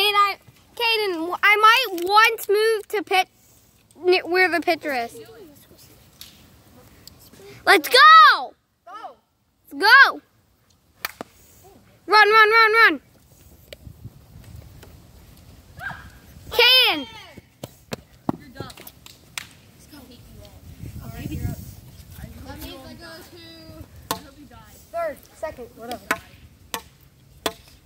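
A young boy talks and calls out loudly nearby.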